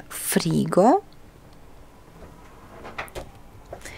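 A refrigerator door thuds shut.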